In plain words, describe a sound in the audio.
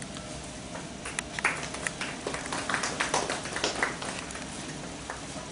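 An audience claps in a room.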